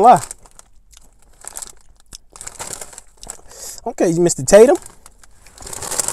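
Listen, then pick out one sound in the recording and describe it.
A crisp snack bag crinkles.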